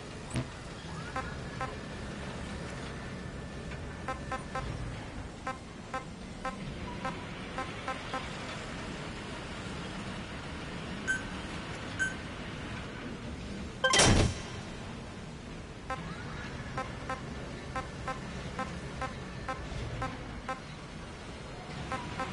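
Short electronic menu clicks and blips sound again and again.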